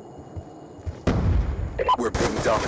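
Gunfire rattles in rapid, loud bursts.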